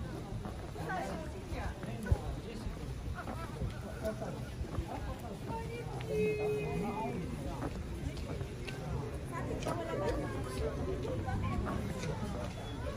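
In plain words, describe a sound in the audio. Men and women chatter in a crowd outdoors.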